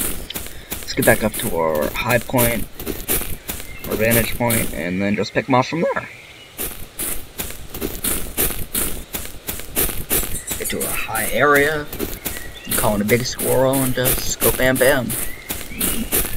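A teenage boy talks casually into a nearby microphone.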